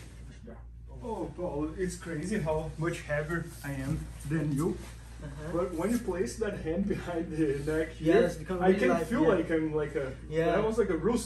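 A man talks calmly and clearly, close by.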